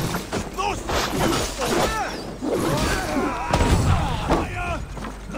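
Blades strike and thud in a close fight.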